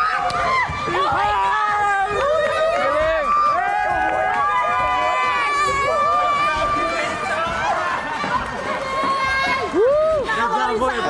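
A crowd of people cheer and shout excitedly.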